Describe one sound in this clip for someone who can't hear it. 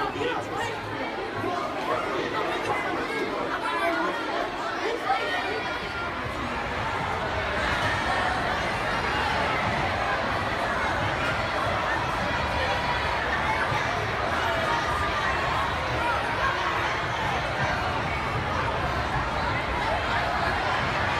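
A crowd of children chatter loudly in a large echoing hall.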